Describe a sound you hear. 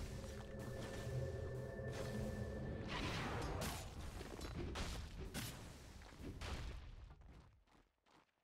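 Weapons clash and magic effects crackle in a fast fight.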